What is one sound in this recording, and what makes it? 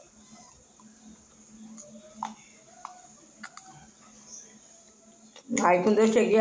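A woman chews food close by with soft mouth sounds.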